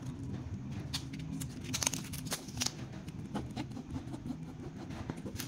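A plastic strip rustles and crinkles between fingers.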